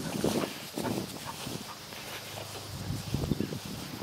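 A dog runs through grass.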